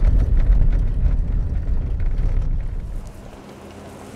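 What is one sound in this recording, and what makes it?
A car rumbles along a gravel road, heard from inside.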